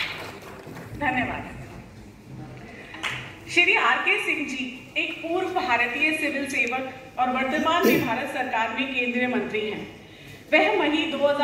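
A woman speaks over a loudspeaker in an echoing hall.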